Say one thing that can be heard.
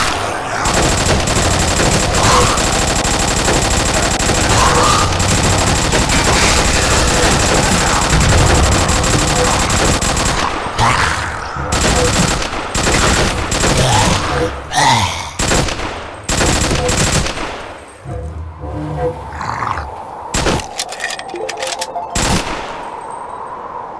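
Gunshots crack repeatedly in quick bursts.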